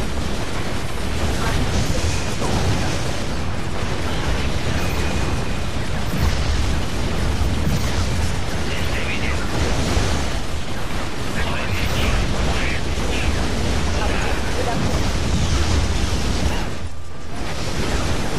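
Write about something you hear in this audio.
Laser beams zap and hum.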